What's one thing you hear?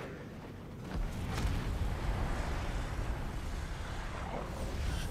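Flames roar with a deep rumble.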